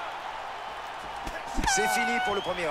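A punch lands with a dull thud.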